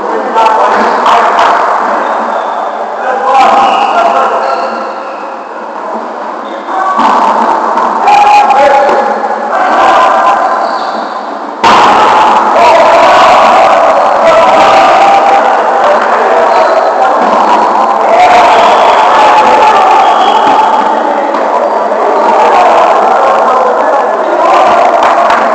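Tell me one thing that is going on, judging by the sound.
Men call out and shout to each other across a large echoing gym.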